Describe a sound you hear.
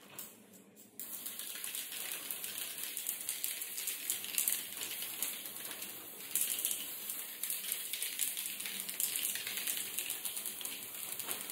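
A spray can hisses in steady bursts, close by.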